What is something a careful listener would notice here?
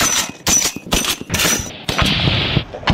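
A heavy machine gun fires rapid loud bursts.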